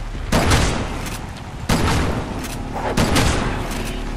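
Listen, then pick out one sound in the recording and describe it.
A handgun fires several loud shots.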